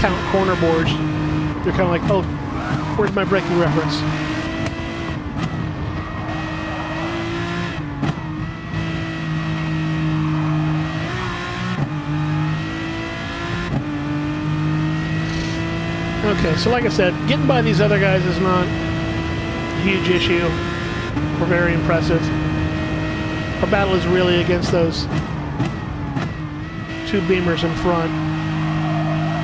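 A racing car engine roars steadily at high speed, shifting gears now and then.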